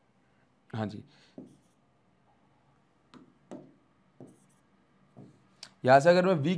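A young man speaks in bursts through a close microphone, explaining with animation.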